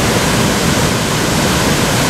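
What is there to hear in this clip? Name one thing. Water splashes up as a swimmer kicks.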